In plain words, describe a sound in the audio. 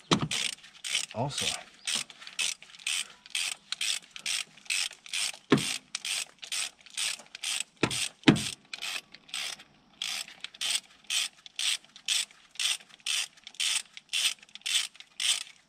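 A ratchet wrench clicks rapidly in short bursts as bolts are turned.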